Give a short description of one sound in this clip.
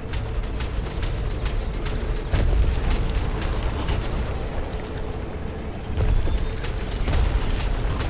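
A racing vehicle's engine roars steadily at speed.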